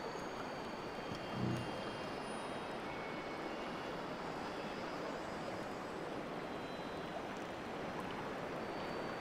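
Wind blows steadily outdoors over open water.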